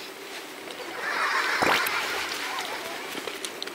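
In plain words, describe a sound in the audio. Several young women laugh together.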